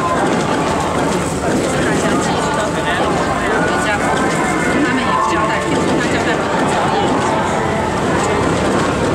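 A crowd of men talk and call out loudly nearby.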